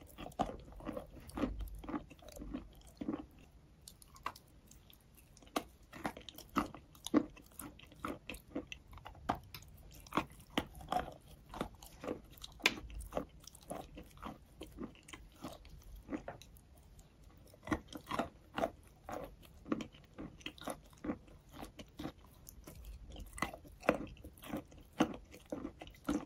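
A woman smacks her lips close to a microphone.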